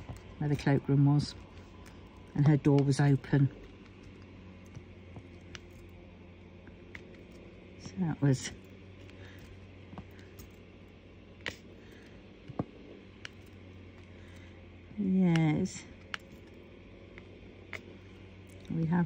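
A small plastic tool taps and clicks lightly, again and again.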